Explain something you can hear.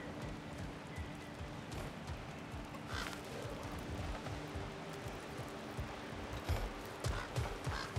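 Heavy footsteps thud on stone and wooden ground at a brisk pace.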